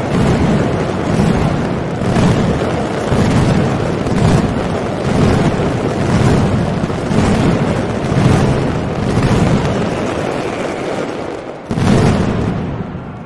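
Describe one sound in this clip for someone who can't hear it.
Firecrackers explode in a rapid, thunderous barrage.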